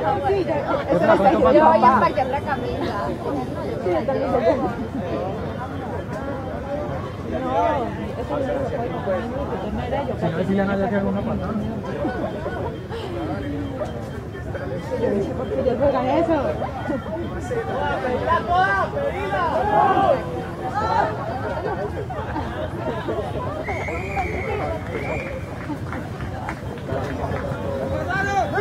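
Men shout and call to each other across an open field outdoors.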